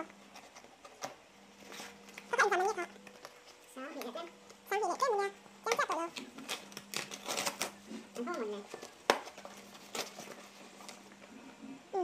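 Cardboard rustles and tears as a box is opened.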